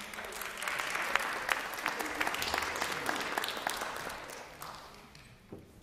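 An audience applauds in a large echoing hall, and the clapping slowly dies away.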